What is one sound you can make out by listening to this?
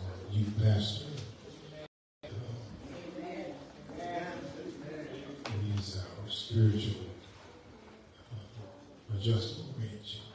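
A man prays fervently into a microphone, heard through loudspeakers in an echoing hall.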